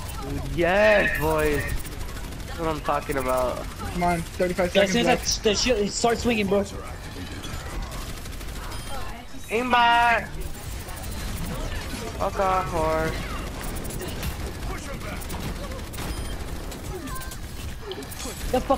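A weapon fires rapid bursts of shots.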